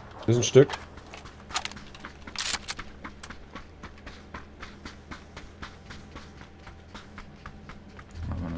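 Quick footsteps patter on dry ground.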